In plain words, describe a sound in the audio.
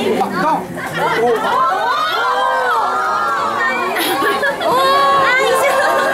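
Young women talk and exclaim with animation close by.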